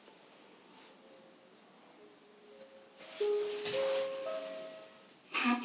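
An elevator chime rings with a few short tones.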